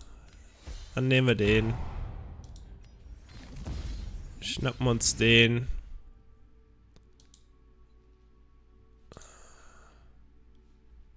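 Short computer game sound effects whoosh and chime.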